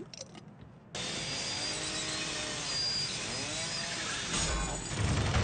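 A grinder screeches against metal.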